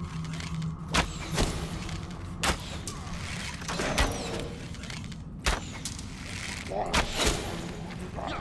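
A bow shoots arrows with sharp twangs.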